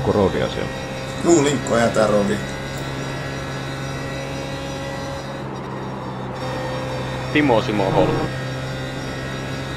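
A race car engine drones steadily at speed.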